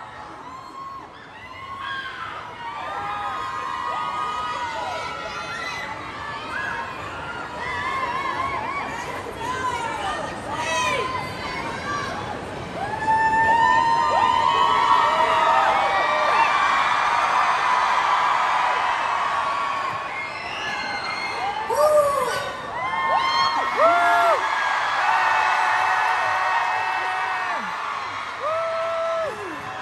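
Young women speak and laugh through microphones over loudspeakers in a large echoing hall.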